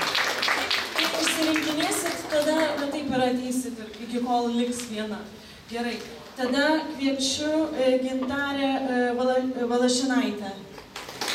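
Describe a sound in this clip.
A young woman reads aloud calmly through a microphone and loudspeakers.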